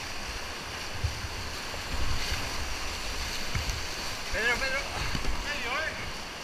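A kayak paddle splashes through the water.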